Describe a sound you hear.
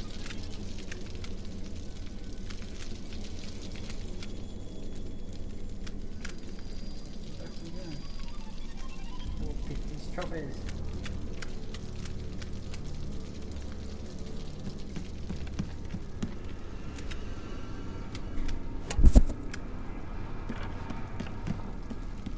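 Footsteps scuff slowly on a stone floor.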